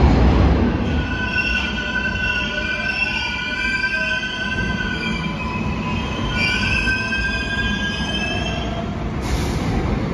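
A subway train's motors whine in rising and falling tones.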